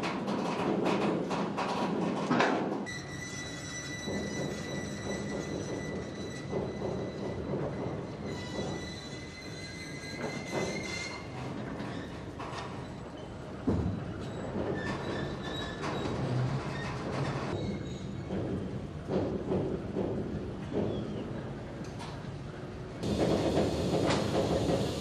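A heavy rail transporter rumbles slowly along the tracks outdoors.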